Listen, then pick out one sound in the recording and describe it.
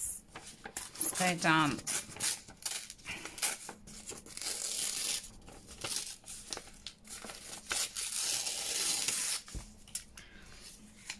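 Paper rustles and crinkles between hands.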